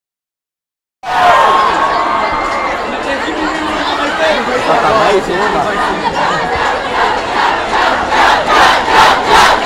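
A large crowd cheers and screams loudly in a big echoing hall.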